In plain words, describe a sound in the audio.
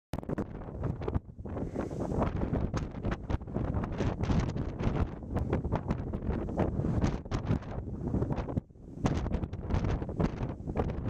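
Strong wind roars and buffets outdoors.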